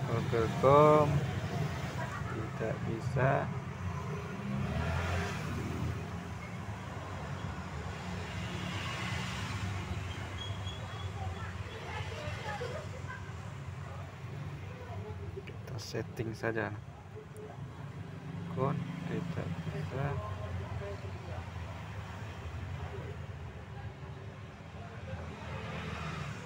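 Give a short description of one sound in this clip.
A finger taps lightly on a phone's touchscreen.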